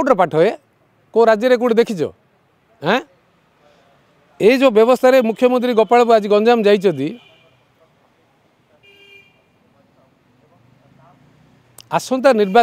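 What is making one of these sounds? A middle-aged man speaks calmly into microphones close by, in short bursts with pauses.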